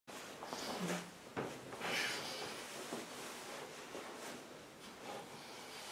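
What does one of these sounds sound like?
Clothes rustle and thump as a man sits down.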